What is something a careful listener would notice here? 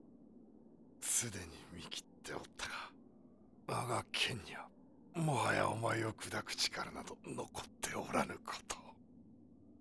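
A deep-voiced man speaks slowly and menacingly.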